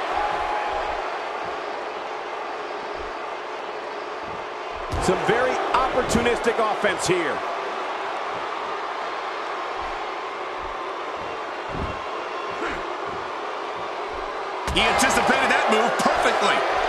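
A large crowd cheers and murmurs steadily in an echoing arena.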